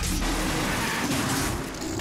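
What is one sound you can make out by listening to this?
A monster roars and snarls.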